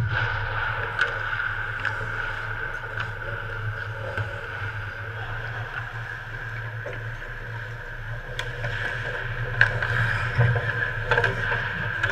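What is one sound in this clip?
Hockey sticks click and clack against the puck and each other.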